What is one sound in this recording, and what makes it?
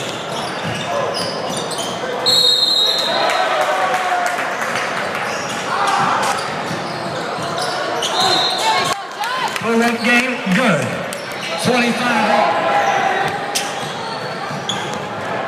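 A crowd murmurs and cheers in an echoing gym.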